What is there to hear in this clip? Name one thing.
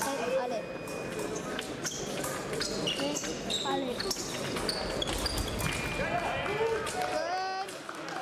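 Fencing blades clash and clink.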